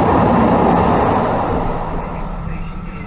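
A train rushes past close by with a loud whoosh.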